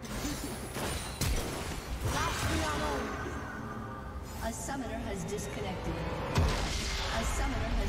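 Magic spells crackle and whoosh in a fast battle.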